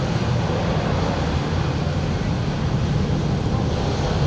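A heavy truck engine rumbles as it drives past.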